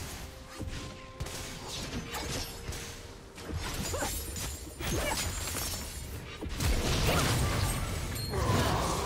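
Spell and attack effects crackle and whoosh in a game battle.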